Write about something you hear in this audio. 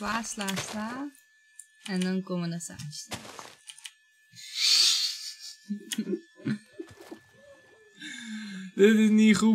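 A young woman talks and laughs into a microphone.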